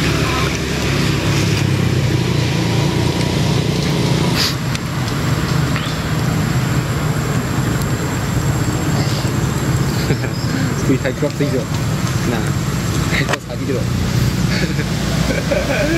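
A monkey chews and smacks on soft fruit close by.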